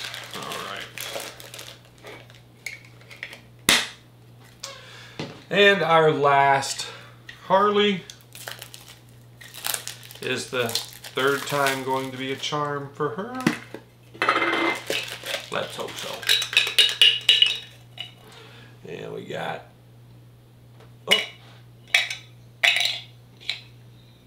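A metal can rattles and clinks in a man's hands.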